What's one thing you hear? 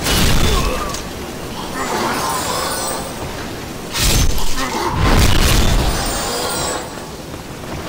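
Wooden crates and barrels smash and clatter.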